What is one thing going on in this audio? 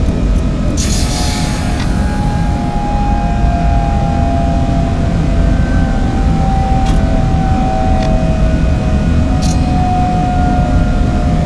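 A train's electric motor whines and slowly drops in pitch.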